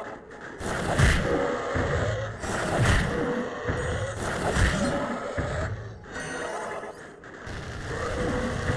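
A fiery blast booms and roars.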